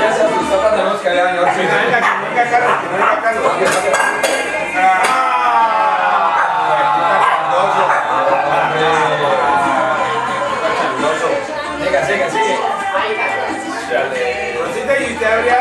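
Several adults talk and laugh together nearby.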